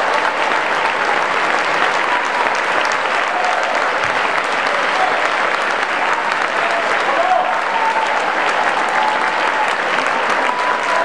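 A large audience applauds loudly and steadily in an echoing hall.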